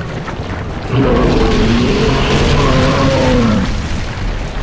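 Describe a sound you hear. A huge creature lets out a deep, drawn-out roar.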